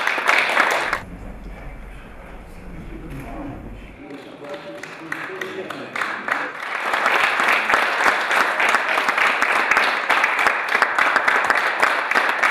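An audience claps and applauds loudly in a large hall.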